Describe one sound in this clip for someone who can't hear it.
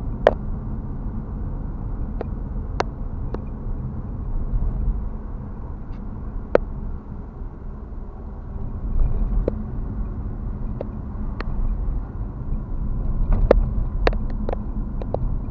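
A car's engine and tyres rumble steadily from inside the car.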